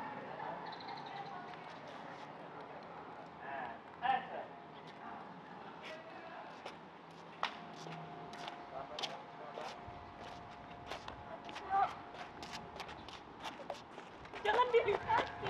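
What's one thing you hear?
Footsteps tap on a paved path outdoors.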